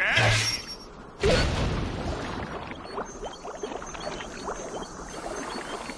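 Water splashes and bubbles.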